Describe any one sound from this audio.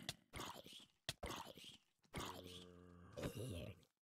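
A zombie groans low and hoarse nearby.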